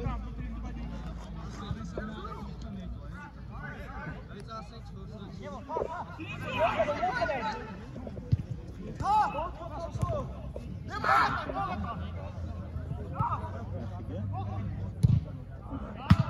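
Young men shout to each other across an open outdoor pitch.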